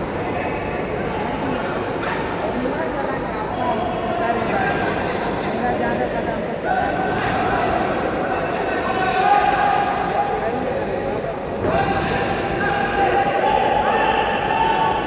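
A crowd of men and women chatter and call out in a large echoing hall.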